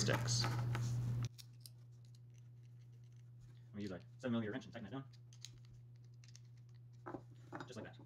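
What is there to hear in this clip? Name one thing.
Small metal parts clink together.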